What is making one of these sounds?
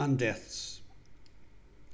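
An elderly man speaks firmly into a microphone.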